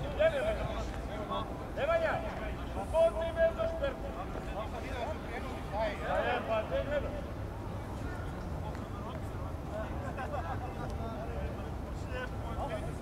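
Young men shout to each other from a distance across an open field.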